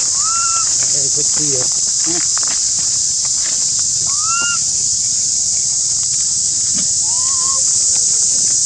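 A baby monkey squeaks with short, rising calls.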